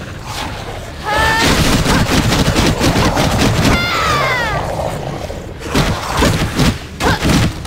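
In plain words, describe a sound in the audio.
Weapons strike and clash rapidly in a fight.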